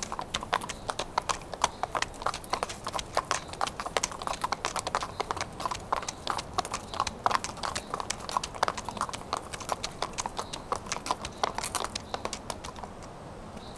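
Horses' hooves clop on a paved street as the horses walk.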